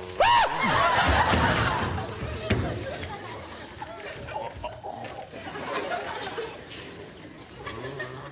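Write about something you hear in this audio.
Shoes stamp and slide on a wooden floor.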